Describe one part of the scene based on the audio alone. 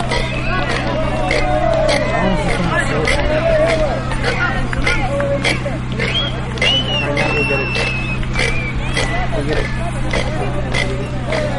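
A crowd of men and women chatters in the background.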